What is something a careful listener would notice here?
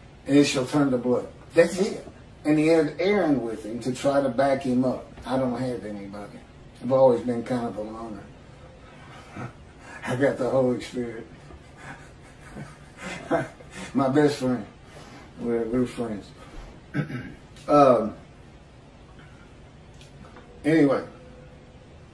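A middle-aged man speaks with animation into a microphone, heard as over an online call.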